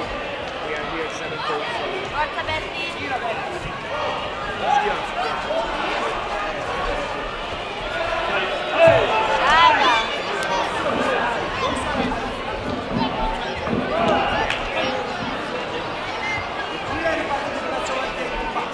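A crowd chatters and shouts throughout a large echoing hall.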